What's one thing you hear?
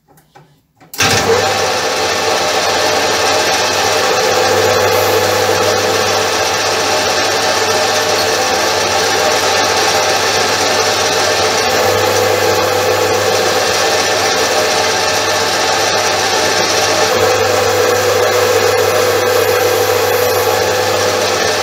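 A lathe motor starts up and whirs steadily.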